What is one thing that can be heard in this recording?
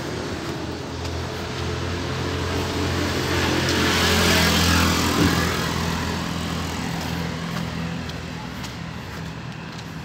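A car drives past along the street, rising and then fading away.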